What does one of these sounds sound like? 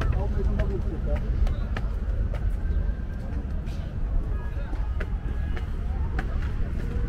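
Footsteps tap on stone stairs outdoors.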